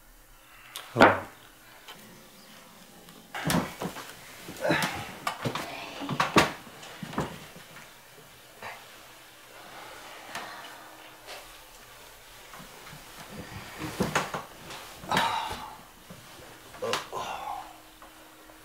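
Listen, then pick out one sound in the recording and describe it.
Bedding rustles and creaks as a man leans over a bed.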